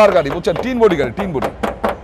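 A knuckle knocks on a car's metal panel.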